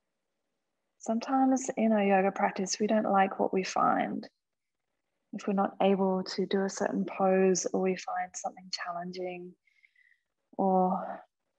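A woman speaks calmly and clearly into a nearby microphone.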